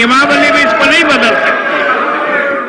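A man speaks loudly into a microphone in a large echoing hall.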